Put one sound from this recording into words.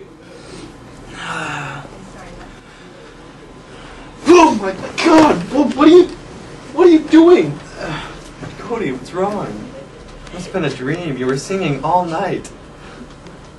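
Young men talk and shout with animation close by.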